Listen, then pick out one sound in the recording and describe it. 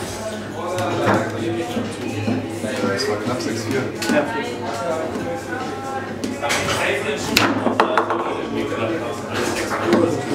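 A small hard ball clacks against the table's plastic figures and walls.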